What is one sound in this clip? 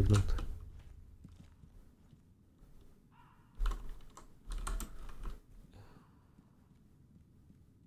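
Footsteps patter quickly on a wooden floor.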